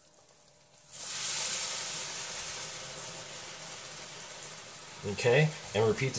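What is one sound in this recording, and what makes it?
Sauce hisses and sizzles as it is poured into a hot pan.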